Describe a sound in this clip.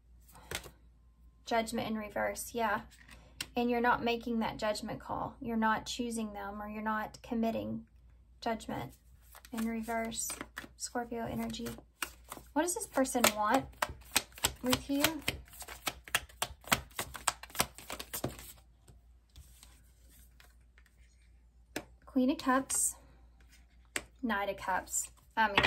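Playing cards slide and tap softly onto a table.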